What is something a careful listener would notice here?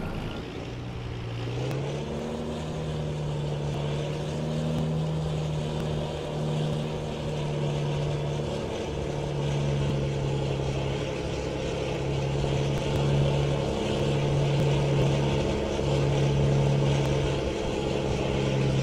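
A heavy truck engine revs and pulls away, rising and dropping in pitch as it shifts gears.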